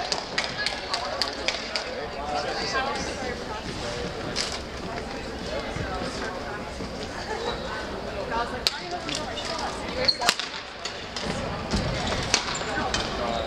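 A crowd of people talk in the background.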